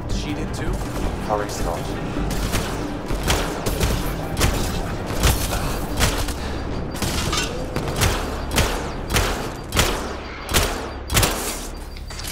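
Energy guns fire in sharp, repeated bursts.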